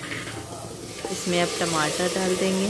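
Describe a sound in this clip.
Chopped tomatoes tumble into a pot.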